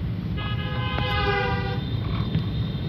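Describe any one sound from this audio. A scooter horn honks nearby.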